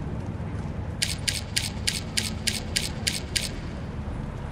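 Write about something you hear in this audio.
Quick electronic ticks sound in a steady run.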